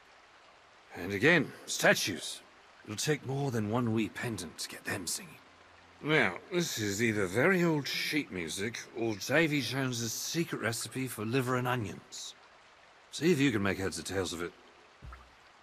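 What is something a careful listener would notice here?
A man speaks theatrically in a gravelly voice, close by.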